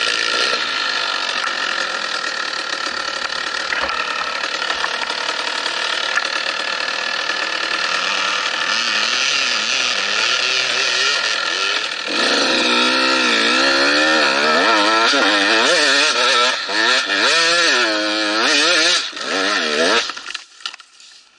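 A dirt bike engine roars close by, revving hard up and down before cutting out.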